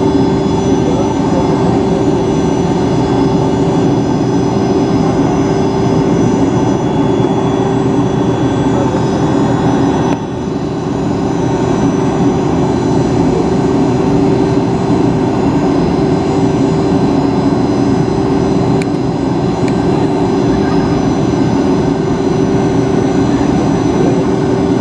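Jet engines hum and whine steadily, heard from inside an aircraft cabin.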